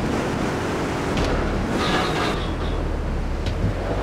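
A crash sounds as a stall is smashed.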